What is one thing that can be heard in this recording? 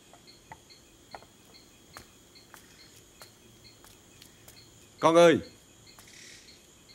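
Footsteps slap steadily on wet ground.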